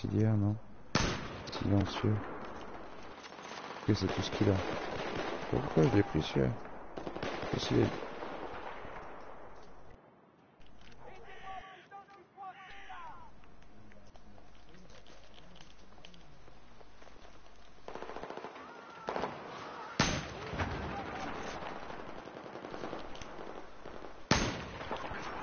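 A sniper rifle fires single loud shots.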